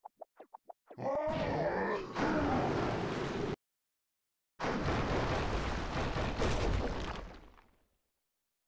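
Rushing water splashes loudly.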